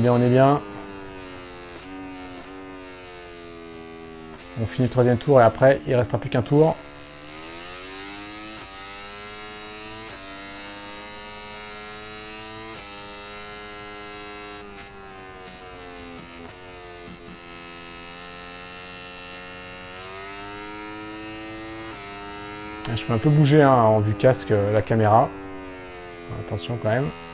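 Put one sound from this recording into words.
A motorcycle engine roars steadily, rising and falling in pitch as it shifts gears.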